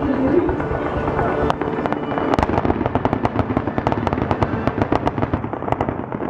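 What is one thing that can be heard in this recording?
Fireworks burst and crackle rapidly outdoors.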